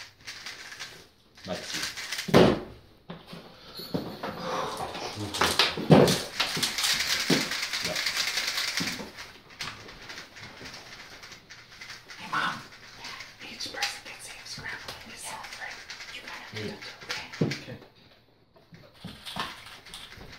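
Plastic puzzle cubes click and rattle as they are twisted quickly.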